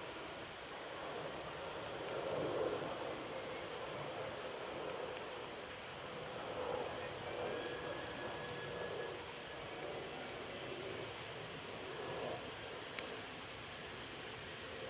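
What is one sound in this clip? Carriage wheels roll and rattle over grass.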